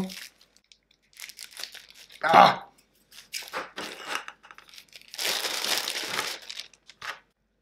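Plastic wrapping crinkles as hands unwrap it.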